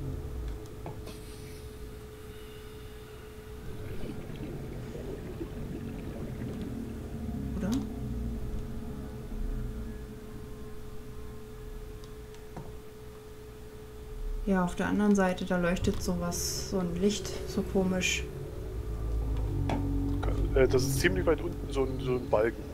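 Low water rumbles around a moving underwater vehicle.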